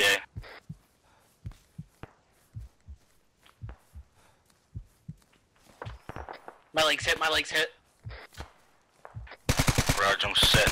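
Footsteps swish and thud through tall grass at a steady walking pace.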